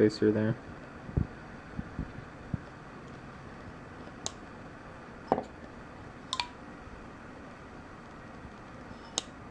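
A folding knife's blade snaps open and shut with sharp clicks.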